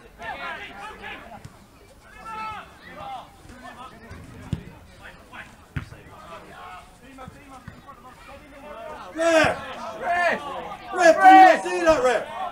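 Young men shout to each other outdoors on a football pitch.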